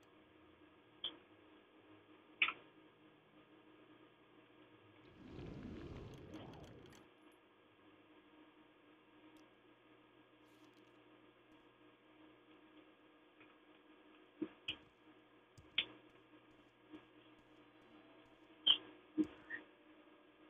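Short clicks and clinks sound now and then.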